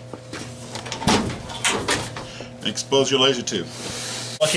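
A metal cover panel thumps and rattles as it is lifted open.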